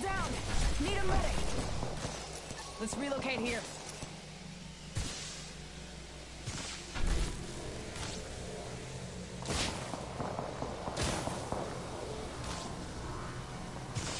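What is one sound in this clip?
Electricity crackles and zaps in sharp bursts.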